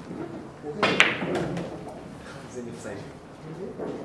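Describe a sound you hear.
Billiard balls clack together and roll across the table.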